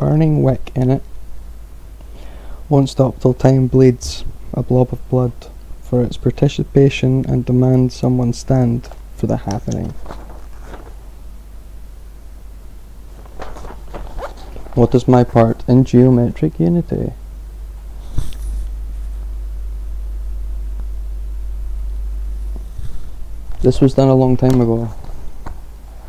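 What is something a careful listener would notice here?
A man talks calmly and close to the microphone, in bursts with pauses.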